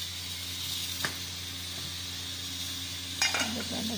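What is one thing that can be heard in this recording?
A metal pot lid clinks as it is lifted.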